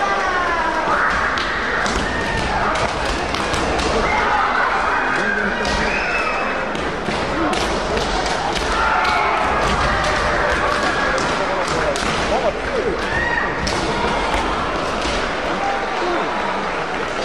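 Young fencers shout loudly at each other in an echoing hall.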